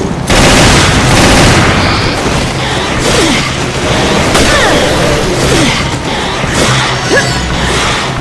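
A monster snarls and shrieks.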